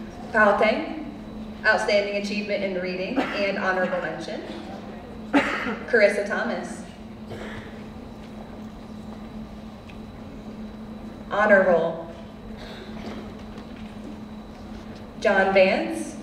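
A woman reads out over a loudspeaker in a large echoing hall.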